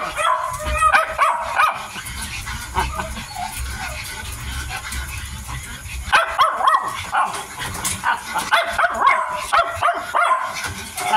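Small animals squeak in short high bursts.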